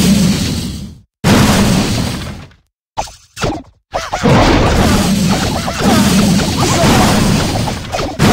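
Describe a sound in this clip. Battle sounds crash and rumble.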